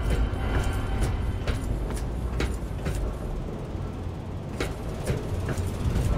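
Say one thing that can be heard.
Footsteps tread steadily across a hard floor.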